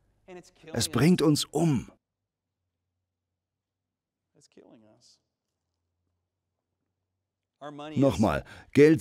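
A young man speaks calmly through a microphone, pausing between phrases.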